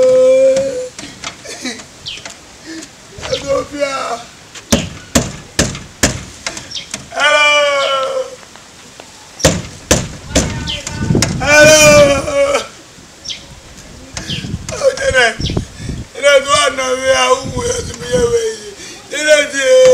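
A young man speaks loudly and with animation nearby, his voice rising and wailing.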